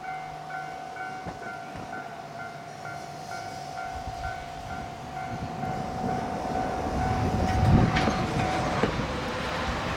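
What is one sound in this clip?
Train brakes squeal steadily and then stop with a hiss.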